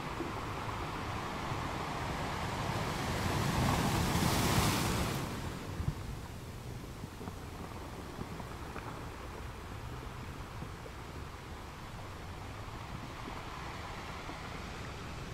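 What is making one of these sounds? Ocean waves crash and break over rocks.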